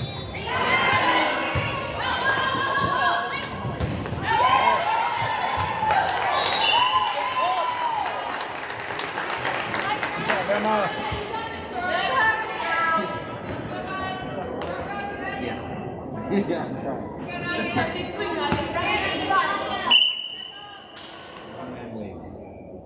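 A volleyball thuds as it is hit.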